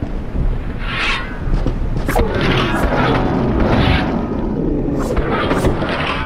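Swords clash and ring sharply several times.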